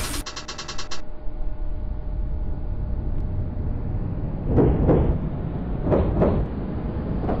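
A tram rumbles along rails with a low electric hum.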